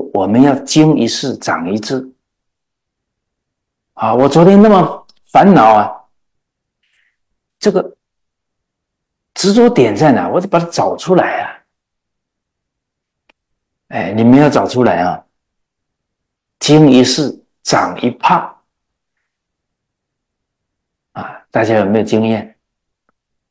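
An elderly man speaks calmly and earnestly into a close microphone, in phrases broken by pauses.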